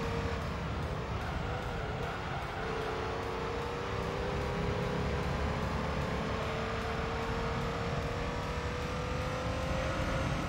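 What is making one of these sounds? A racing car engine drones steadily in a video game, its pitch slowly rising.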